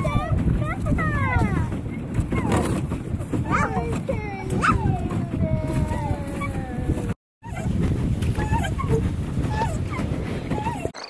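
Water laps and splashes against a small boat's hull.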